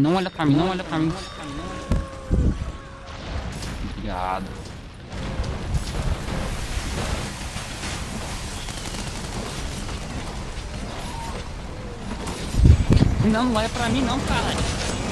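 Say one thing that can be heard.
A huge creature roars and snarls.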